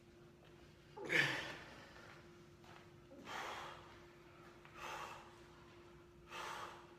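A man grunts and breathes out hard with effort.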